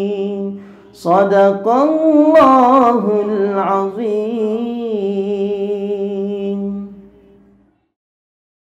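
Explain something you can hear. A man recites in a slow, melodic voice close to a microphone.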